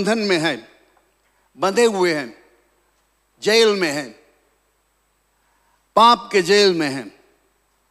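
An older man preaches through a microphone in short, emphatic phrases with pauses between.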